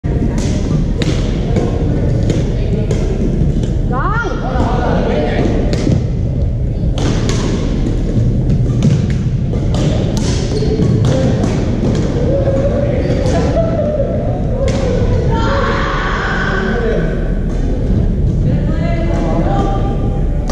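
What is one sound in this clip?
Paddles strike a ball with sharp pops, back and forth, echoing in a large hall.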